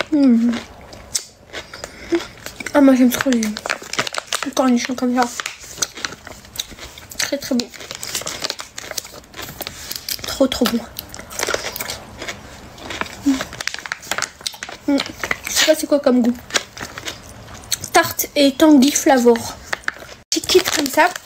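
A plastic packet crinkles in a young woman's hands.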